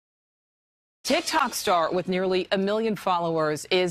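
A woman speaks steadily, as if reading out news through a broadcast microphone.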